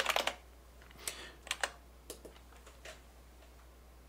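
Fingers tap quickly on the keys of a small keyboard.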